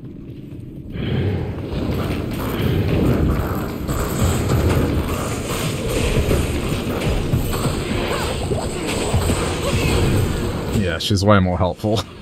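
Weapons clash in a fierce fight.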